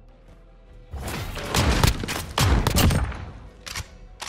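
Loud gunshots burst rapidly from a rifle.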